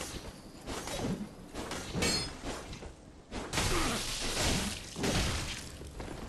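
Fire bursts with a loud whoosh.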